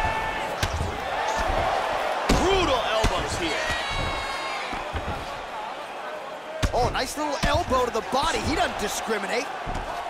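Punches land with dull, heavy thuds.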